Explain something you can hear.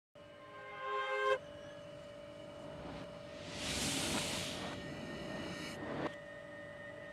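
A train rolls slowly past on the tracks, wheels rumbling and creaking.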